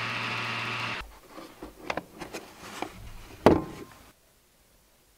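A plastic case clicks and clatters open.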